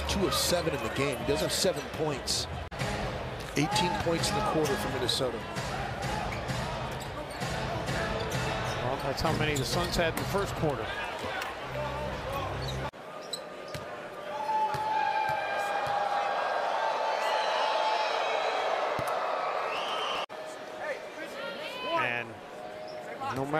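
A large crowd cheers and murmurs in an echoing arena.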